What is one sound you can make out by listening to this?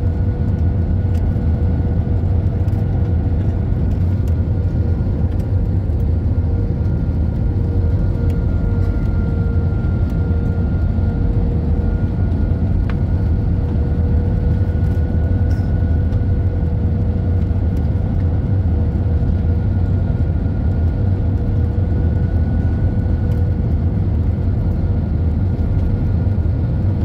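A steady engine whine hums through the cabin.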